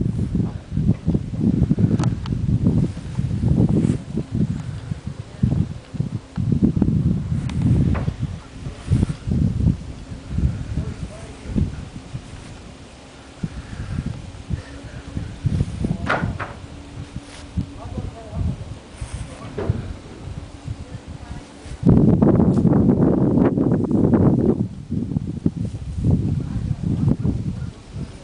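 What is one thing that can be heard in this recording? Wind gusts and rumbles outdoors in open country.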